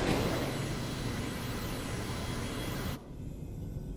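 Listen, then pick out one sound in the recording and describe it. A spaceship whooshes along with a steady rushing roar.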